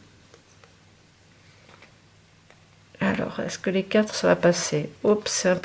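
A hand punch clicks as it presses through card.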